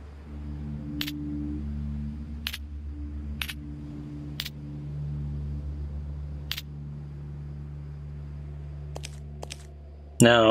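Footsteps crunch slowly on rough ground.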